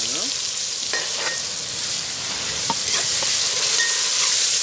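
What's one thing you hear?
A metal spoon scrapes and knocks against a pot.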